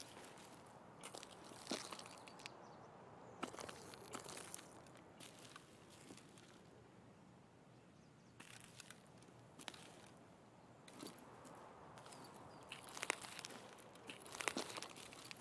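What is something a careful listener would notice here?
Footsteps rustle through grass in short bursts.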